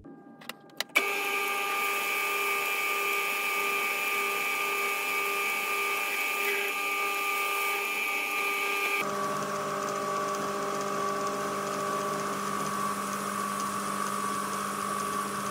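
A metal lathe spins with a steady whirring hum.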